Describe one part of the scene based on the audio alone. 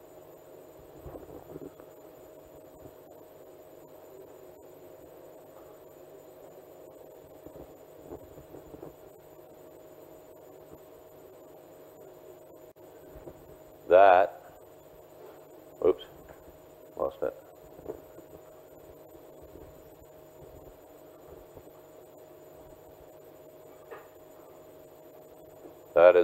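A man speaks briefly through a microphone, with long pauses.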